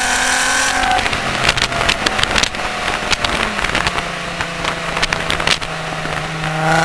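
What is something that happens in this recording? A car exhaust crackles and pops as the engine eases off.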